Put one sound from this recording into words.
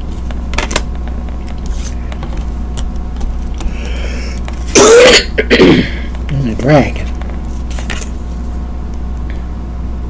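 Cardboard card boxes tap and scrape on a wooden table.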